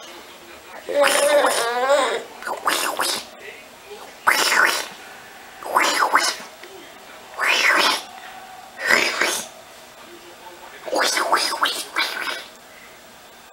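A baby babbles and squeals happily close by, in short bursts.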